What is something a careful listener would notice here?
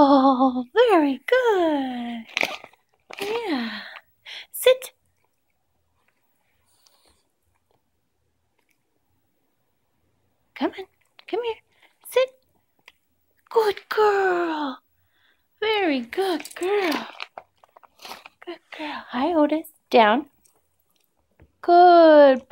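A small dog whines and yelps in high, rising and falling cries.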